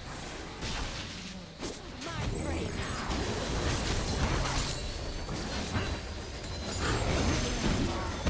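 Magic blasts whoosh and crackle in a fast fight.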